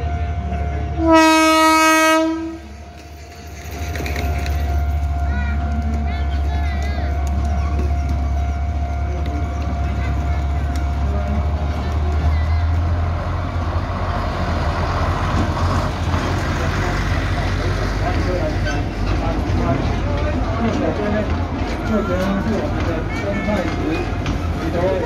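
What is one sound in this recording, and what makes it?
A diesel locomotive engine rumbles as it approaches and passes close by.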